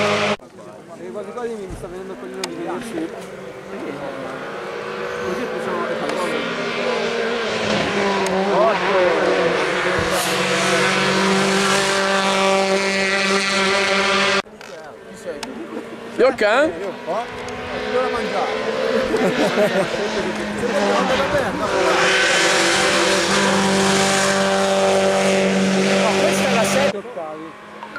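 A rally car engine roars up and speeds past.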